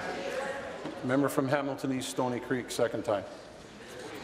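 A man announces loudly and firmly through a microphone in a large hall.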